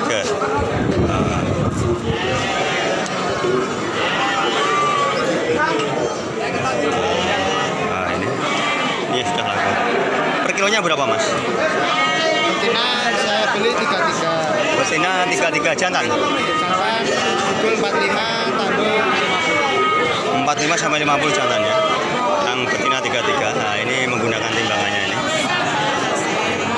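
Men talk and call out in a busy crowd.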